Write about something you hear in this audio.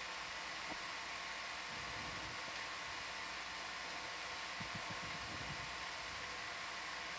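An underwater vehicle's motors hum and hiss steadily.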